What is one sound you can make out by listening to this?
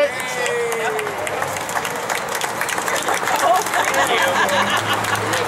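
A crowd claps and applauds.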